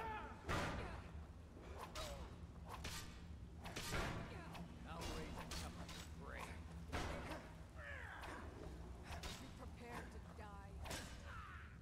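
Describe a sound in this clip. A woman shouts and grunts while fighting.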